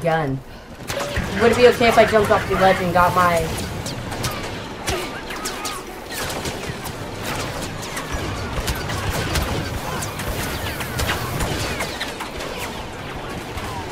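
Blaster rifles fire rapid shots in a video game battle.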